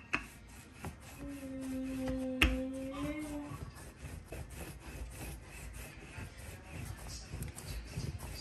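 A wooden rolling pin rolls over dough with soft thuds and rumbles.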